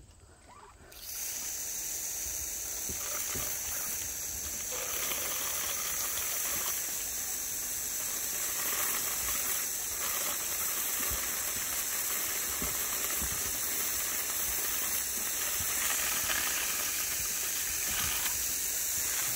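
Chickens cluck softly nearby.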